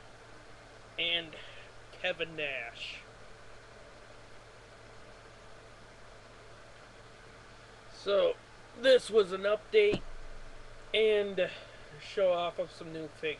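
A young man speaks casually, close to a microphone.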